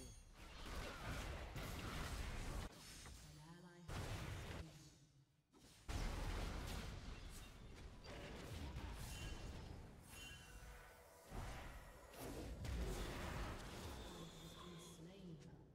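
Spell blasts and clashing hits crackle from a game.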